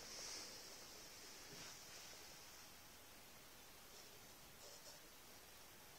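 A dog sniffs close by in short, quick bursts.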